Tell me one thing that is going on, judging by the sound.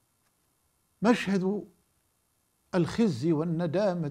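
An older man speaks calmly and expressively into a close microphone.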